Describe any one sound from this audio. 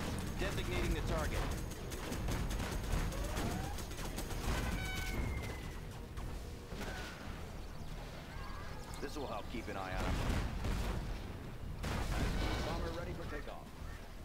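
Tank cannons fire in rapid bursts.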